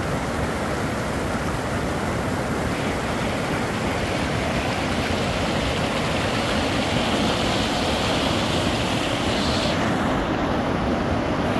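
A mountain stream rushes over rocks close by.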